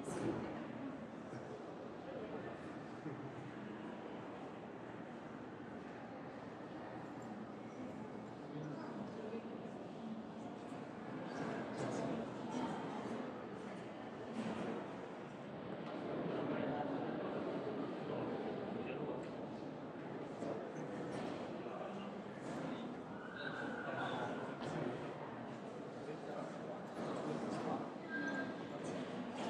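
A small crowd murmurs quietly.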